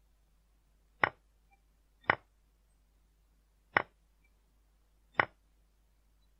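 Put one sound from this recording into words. Short sharp clicks sound as chess pieces are moved in a game.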